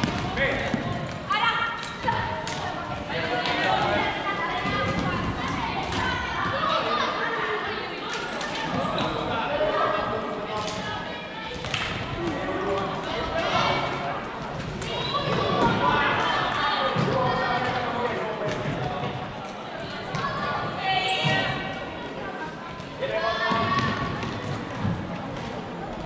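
Sticks knock against a ball with sharp clicks.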